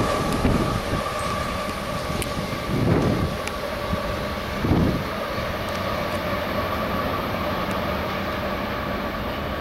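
A train approaches in the distance with a low rumble.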